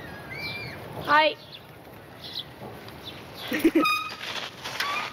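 A young girl calls out nearby in a light, friendly voice.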